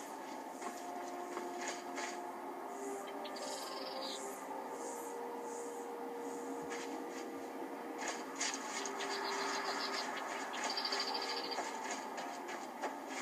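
Footsteps rustle through dry grass at a steady walking pace.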